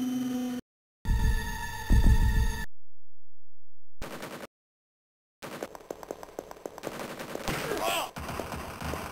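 A gun fires loud blasts.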